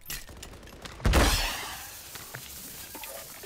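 A blast roars and crackles up close.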